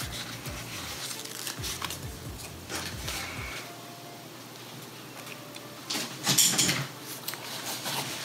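A sticker peels off its backing.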